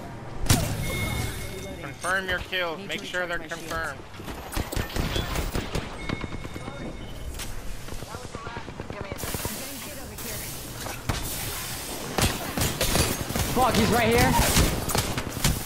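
Gunfire rattles in rapid bursts, close by.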